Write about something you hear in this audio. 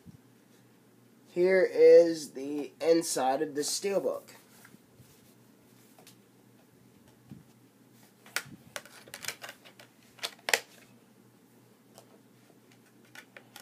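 Plastic disc cases click and rattle as hands handle them.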